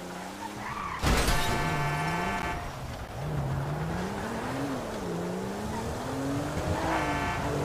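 A car drives over a rough road.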